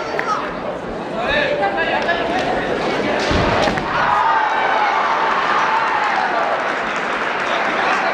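Fencers shout loudly and long in a large echoing hall.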